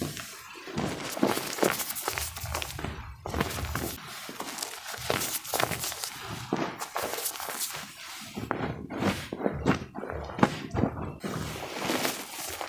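Powder crumbles and patters as it falls from hands.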